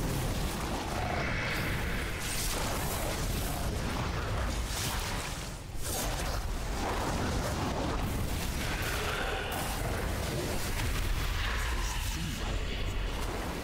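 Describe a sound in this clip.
Spell effects crackle and whoosh in a game battle.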